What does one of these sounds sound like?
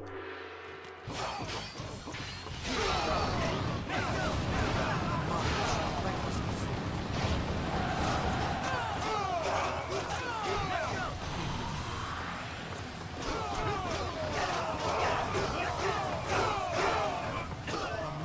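Swords clash and strike repeatedly in a loud battle.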